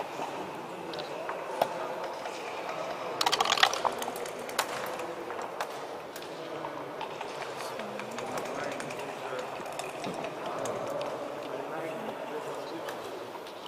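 A game clock button clicks.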